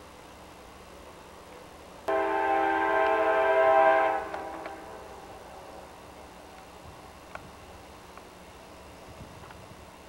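A diesel locomotive engine rumbles as it approaches.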